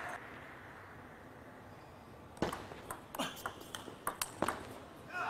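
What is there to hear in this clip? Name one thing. A ball clicks sharply back and forth off paddles and a table in a large echoing hall.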